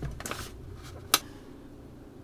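A microwave door shuts with a click.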